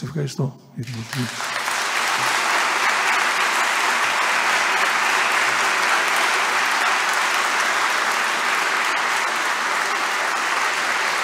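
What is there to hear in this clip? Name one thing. A large audience applauds steadily.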